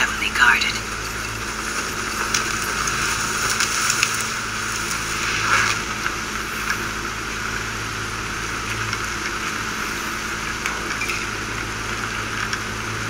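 Steady rain pours down outdoors.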